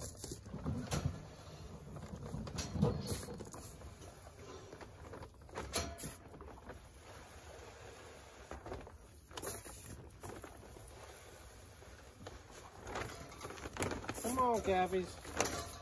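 A paper feed sack rustles and crinkles.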